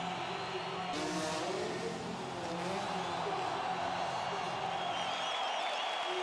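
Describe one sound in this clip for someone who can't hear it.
A motorbike engine revs loudly.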